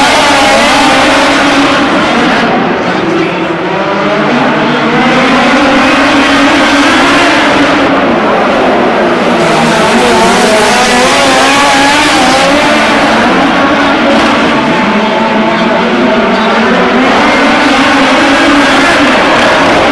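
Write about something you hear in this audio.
Racing car engines roar loudly and waver in pitch as they speed around a dirt track.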